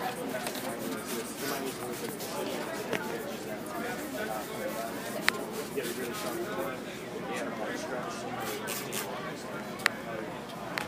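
A plastic film crinkles and rustles as it is smoothed.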